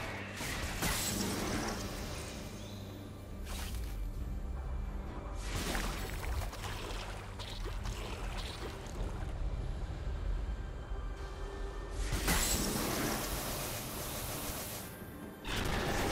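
Fast, clashing game battle effects whoosh and burst.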